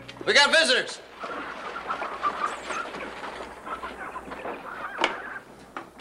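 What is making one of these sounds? Carriage wheels roll over the ground.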